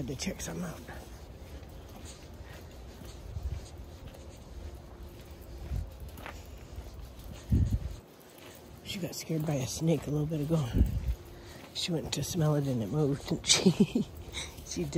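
A small dog's paws patter softly on a gravel path.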